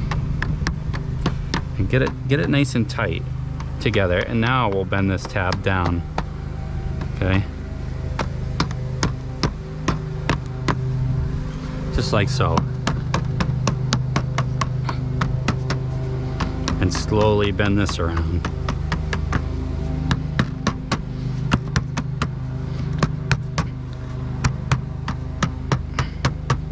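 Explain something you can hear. A rubber mallet taps repeatedly on metal flashing.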